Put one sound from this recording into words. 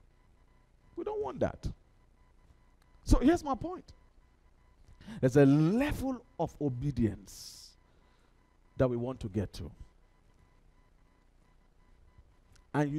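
A man speaks with animation through a headset microphone, in short bursts with pauses.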